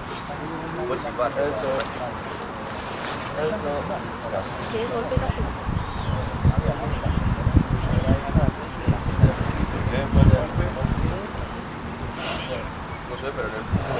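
Young men shout to each other in the distance across an open field.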